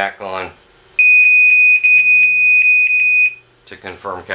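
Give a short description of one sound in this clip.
An electronic device gives a long, loud, steady beep.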